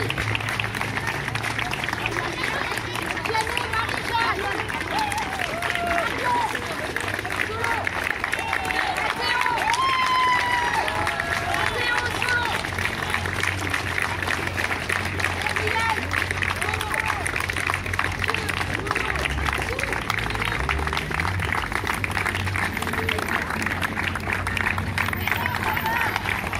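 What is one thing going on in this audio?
A choir of children and adults sings outdoors.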